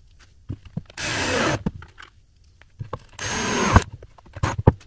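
A cordless drill whirs in short bursts, driving screws into wood.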